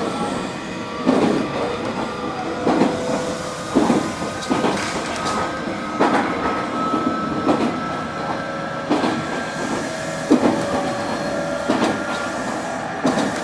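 A stopped electric train hums steadily with a high, even whine.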